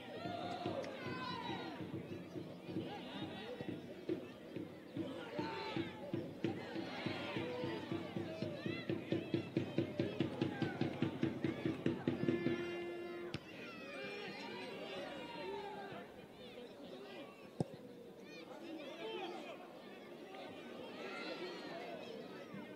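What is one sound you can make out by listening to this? A crowd of spectators calls out and chatters from the stands.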